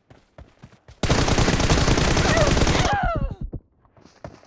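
Rapid automatic gunfire rattles loudly, then fades.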